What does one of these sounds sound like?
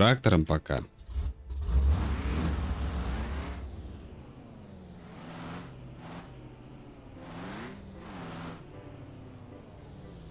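A car engine starts and revs as the car drives off.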